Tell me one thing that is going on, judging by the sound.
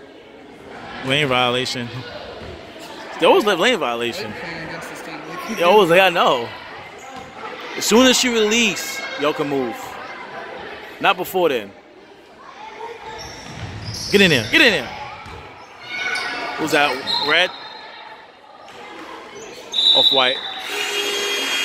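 Spectators shout and cheer loudly close by in a large echoing gym.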